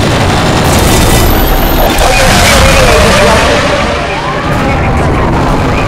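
A racing car engine roars at high speed.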